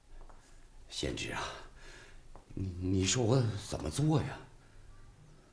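A middle-aged man speaks nearby with animation.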